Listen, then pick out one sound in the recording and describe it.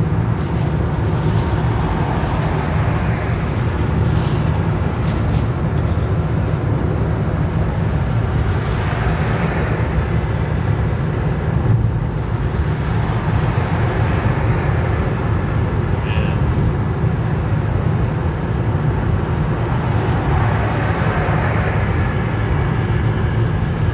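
A steady rumble of road noise fills a moving car.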